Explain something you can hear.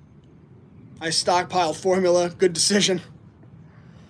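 A young man speaks briefly and with animation, close to the microphone.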